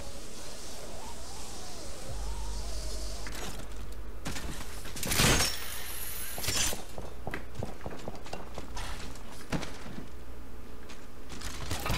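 Footsteps thud as a character runs.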